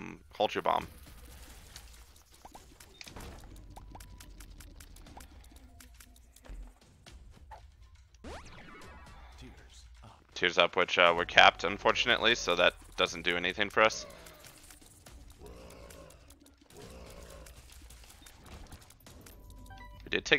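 Video game shots pop and splat in quick bursts.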